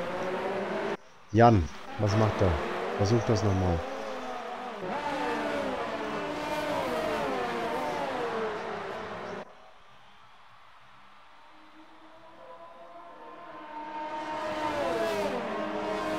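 Racing car engines whine at high pitch, rising and falling as the cars shift gears.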